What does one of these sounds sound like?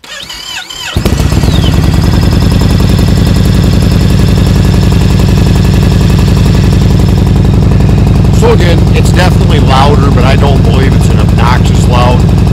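A motorcycle engine idles loudly and steadily close by.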